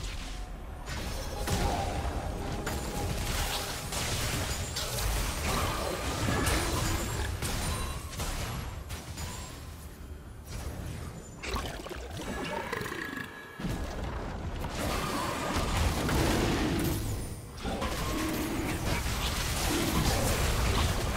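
Weapons clash and strike in rapid hits during a video game fight.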